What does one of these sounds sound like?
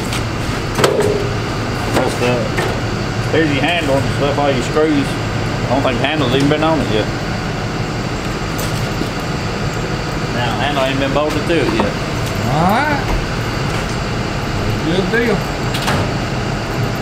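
Metal drawers slide open and shut with clicks.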